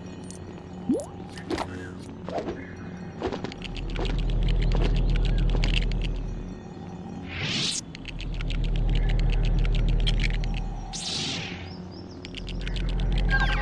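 A lightsaber hums and whooshes as it swings.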